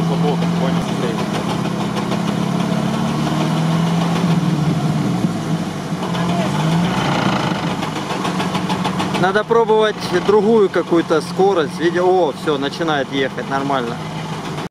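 An engine drones steadily.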